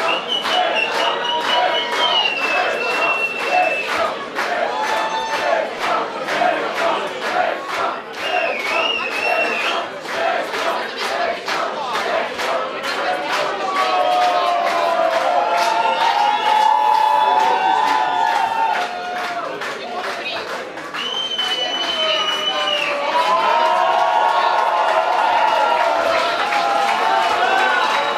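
Loud music with a pounding beat plays over loudspeakers in a large echoing hall.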